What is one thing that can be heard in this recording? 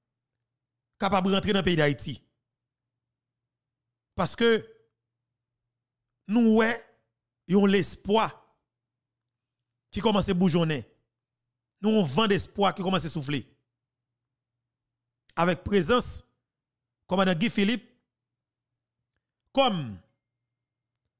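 A man speaks with animation into a close microphone, in short bursts with pauses.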